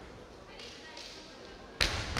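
Bamboo swords clack together sharply.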